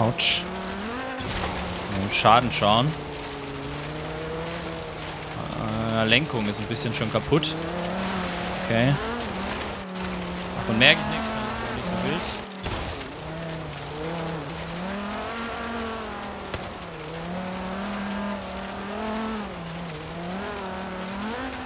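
Tyres skid and crunch on a dirt road.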